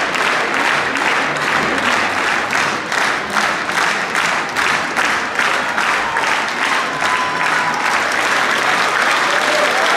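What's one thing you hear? A large audience claps in rhythm in an echoing hall.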